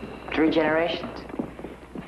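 A teenage boy speaks close by.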